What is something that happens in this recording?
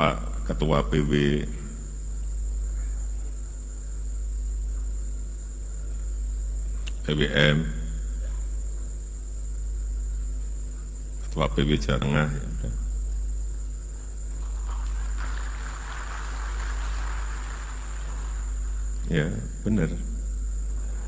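A man speaks into a microphone in short bursts, heard through loudspeakers.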